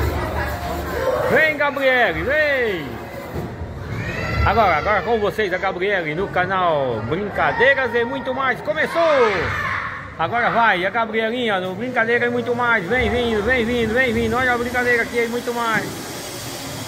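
Children shout and squeal excitedly nearby in an echoing hall.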